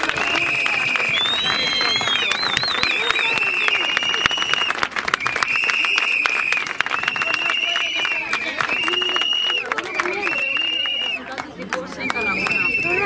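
A crowd claps along in rhythm outdoors.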